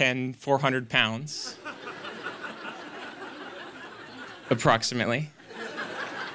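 A young man speaks cheerfully into a microphone.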